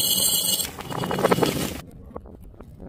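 Soft candies tumble into a glass jar.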